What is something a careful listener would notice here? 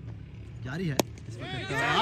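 A cricket bat strikes a ball with a sharp crack in the distance.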